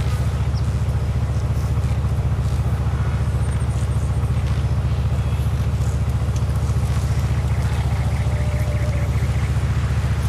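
An SUV engine runs with a low, pulsing rumble.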